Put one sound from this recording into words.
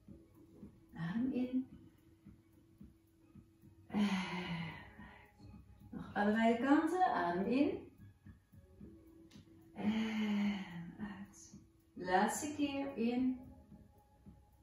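A middle-aged woman speaks calmly in short phrases, close by.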